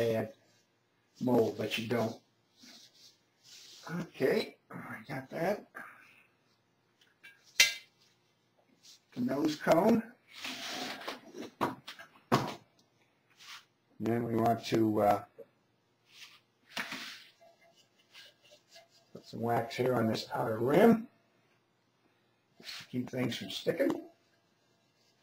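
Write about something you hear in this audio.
Hands rub and scrape wet plaster.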